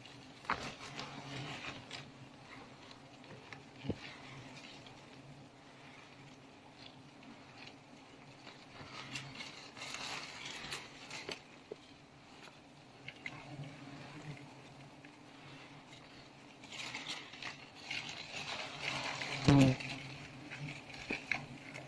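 Bees buzz around a hive close by.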